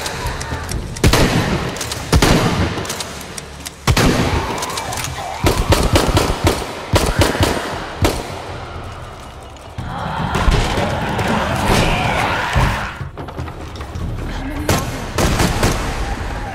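Gunshots ring out in loud, rapid bursts.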